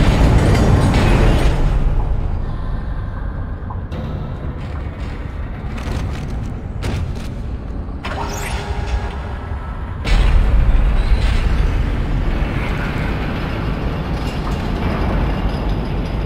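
A deep machine rumble drones steadily, louder at the start and end.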